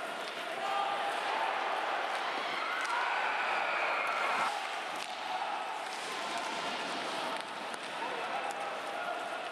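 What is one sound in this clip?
Ice skates scrape across the ice.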